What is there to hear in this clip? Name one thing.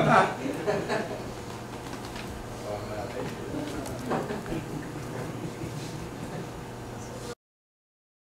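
A crowd murmurs and chatters indoors.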